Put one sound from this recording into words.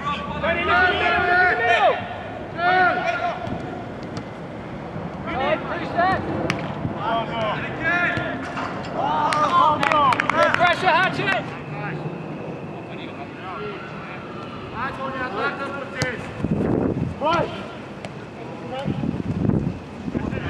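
Men shout to each other outdoors at a distance.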